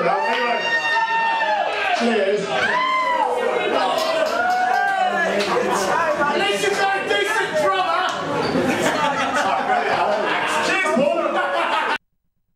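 A rock band plays loudly in a live venue.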